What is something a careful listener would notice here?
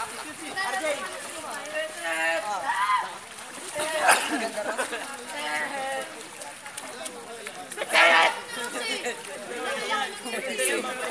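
Children shout and chatter excitedly nearby.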